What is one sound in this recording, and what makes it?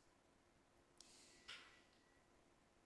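A woman laughs softly through an online call.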